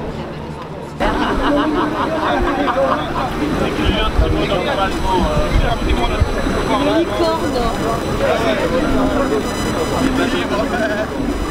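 Young men talk and laugh nearby outdoors.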